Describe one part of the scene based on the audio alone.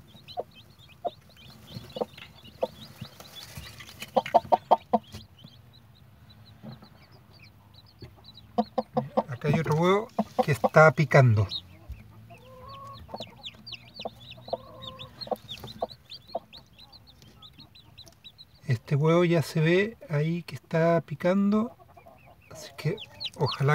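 A chick peeps in quick, high chirps.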